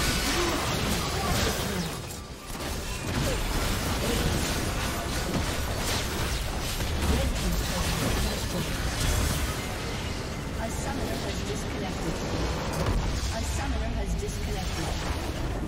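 Magic blasts and impacts clash loudly in a frantic battle.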